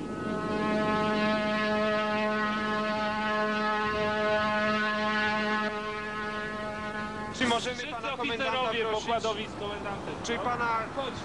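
Wind blows hard over a rough sea.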